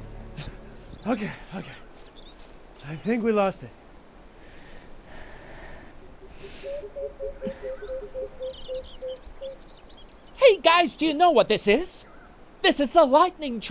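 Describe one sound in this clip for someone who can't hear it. A young man speaks in a tense, urgent voice close by.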